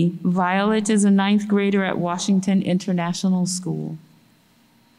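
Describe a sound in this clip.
A woman speaks calmly into a microphone in a large echoing room.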